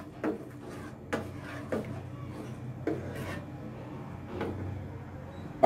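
A plastic spatula scrapes and stirs food in a frying pan.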